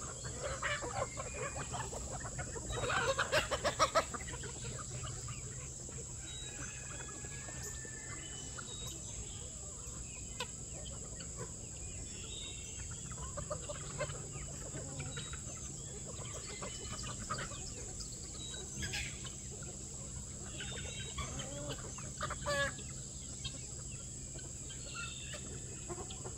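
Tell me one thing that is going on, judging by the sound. A flock of chickens clucks and squawks outdoors.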